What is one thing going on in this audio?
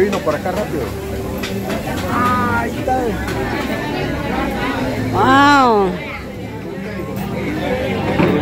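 Several people talk in a busy crowd nearby.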